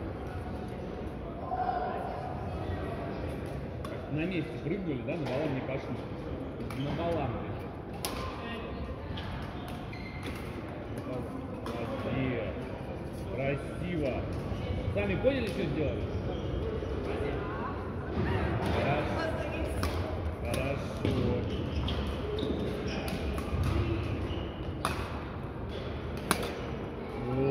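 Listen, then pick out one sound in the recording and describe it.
Several young men and women talk and call out across a large echoing hall.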